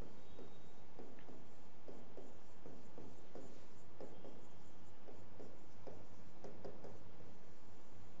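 A marker squeaks on a board as a man writes.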